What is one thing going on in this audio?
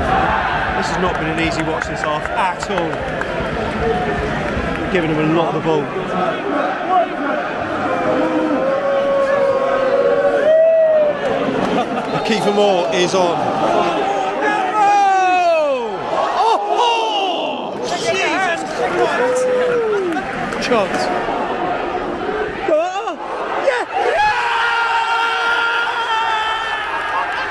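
A large crowd chants and sings in an echoing stadium.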